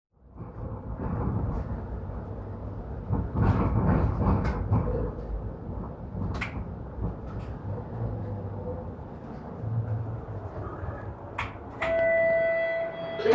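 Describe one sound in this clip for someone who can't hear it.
A streetcar rumbles and rattles along its tracks.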